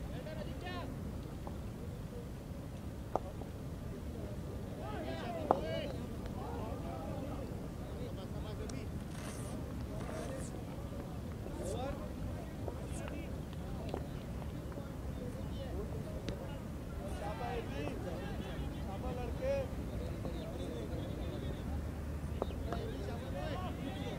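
Distant men call out across an open field.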